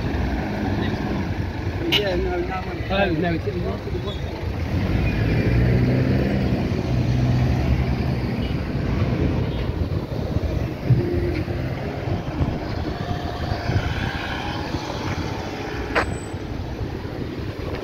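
Traffic rumbles past on a road.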